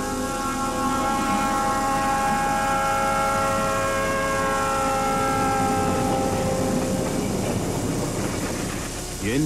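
A diesel locomotive engine drones loudly as the train approaches and passes close by.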